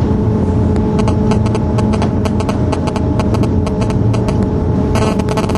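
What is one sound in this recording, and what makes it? Train wheels click rapidly over rail joints.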